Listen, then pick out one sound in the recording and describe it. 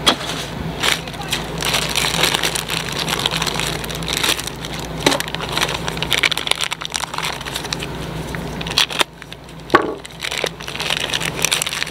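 A plastic bag crinkles as a part is unwrapped.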